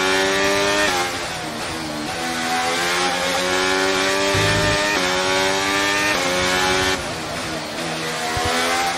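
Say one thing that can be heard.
A racing car engine whines down under braking before accelerating again.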